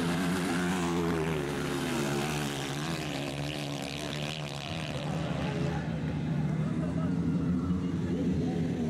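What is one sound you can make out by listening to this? A dirt bike engine revs loudly, rising and falling in pitch.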